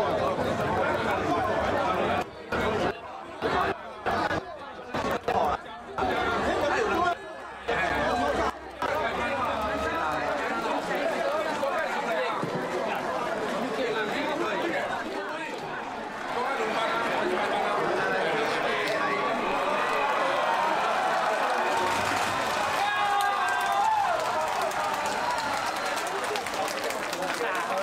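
A dense crowd chatters and shouts loudly all around.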